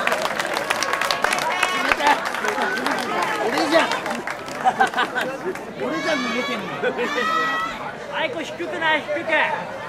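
Young women laugh and chatter with animation close by.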